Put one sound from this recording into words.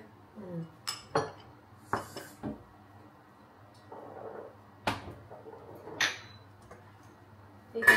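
Small plastic jars clink and rattle in a woman's hands.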